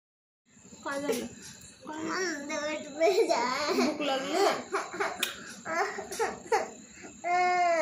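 A young boy speaks and laughs close by.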